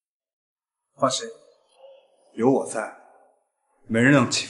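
A young man speaks with emotion, close by.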